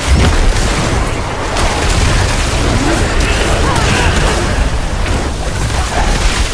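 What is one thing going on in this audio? Magic spells crackle and burst in rapid bursts.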